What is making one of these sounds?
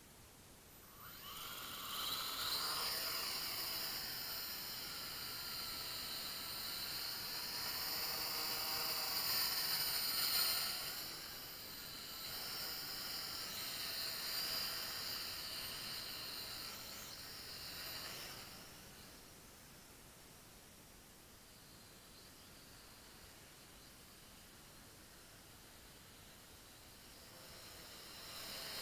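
A small drone's propellers whine and buzz overhead, shifting in pitch as it flies and fading as it climbs away.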